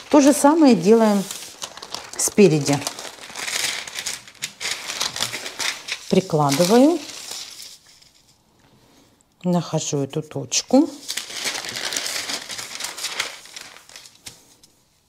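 Sheets of paper rustle and slide across a table.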